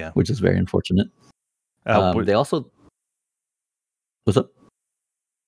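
A young man talks in bursts, close to a microphone, over an online call.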